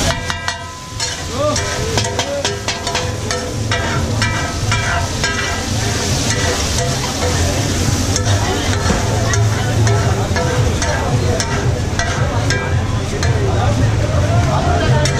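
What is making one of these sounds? A metal spatula scrapes and taps on a hot griddle.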